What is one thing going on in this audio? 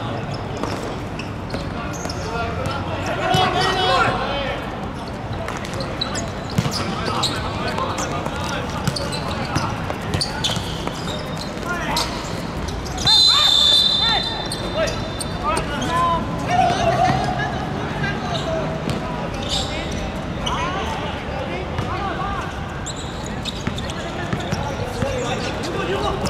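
A football is kicked with dull thuds on a hard court.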